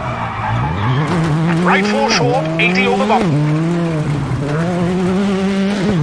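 A rally car engine revs hard, its pitch climbing and dropping sharply with each gear change.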